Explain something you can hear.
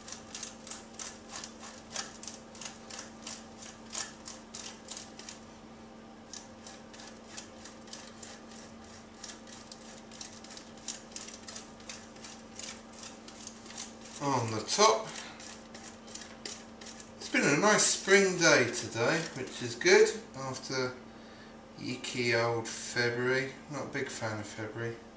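A cheese grater scrapes rhythmically as cheese is grated.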